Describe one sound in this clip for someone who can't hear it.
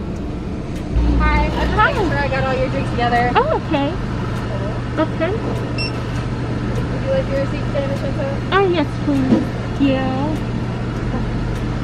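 A young woman speaks calmly and close by, slightly muffled.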